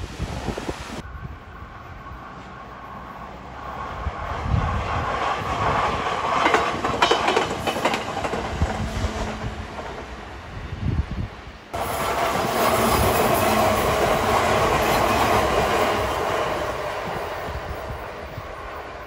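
A train rumbles past close by on the tracks.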